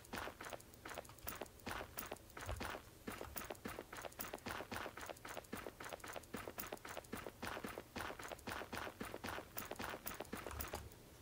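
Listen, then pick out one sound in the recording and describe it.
Footsteps tread quickly and steadily over grass and dirt.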